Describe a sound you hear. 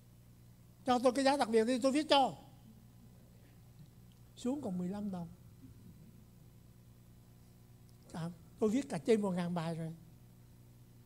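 An elderly man speaks with animation into a microphone, pausing between phrases.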